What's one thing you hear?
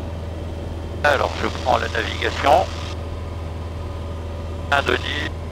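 A man speaks calmly through a headset intercom.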